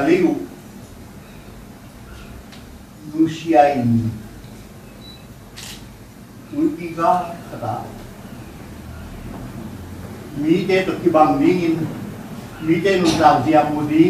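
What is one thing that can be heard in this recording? A man speaks slowly and solemnly through a microphone, pausing between phrases.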